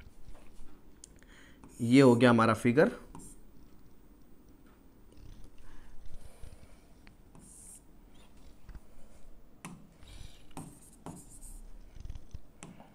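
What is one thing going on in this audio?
A marker squeaks on a board.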